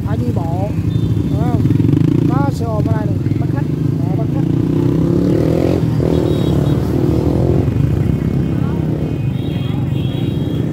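Motorbike engines idle with a steady low rumble nearby.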